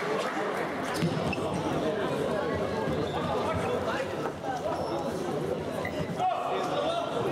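A futsal ball is kicked and thuds across a hard indoor court in a large echoing hall.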